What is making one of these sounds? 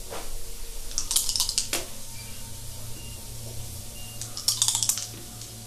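Dice rattle and clatter as they are rolled onto a table.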